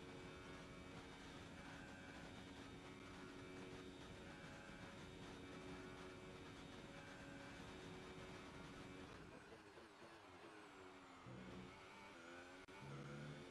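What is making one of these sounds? A racing car engine screams at high revs, then drops in pitch as the car brakes and shifts down.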